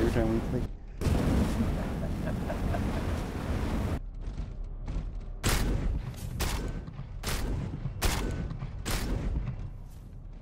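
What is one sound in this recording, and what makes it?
Heavy guns fire loud shots again and again.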